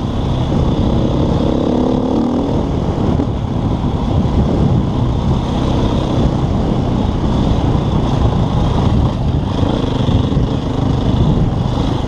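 Tyres crunch over a bumpy dirt track.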